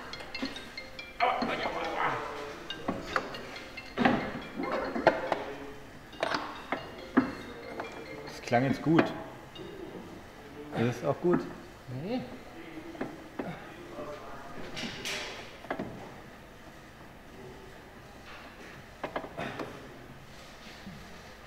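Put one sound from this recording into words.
Metal tools clink and knock against car parts.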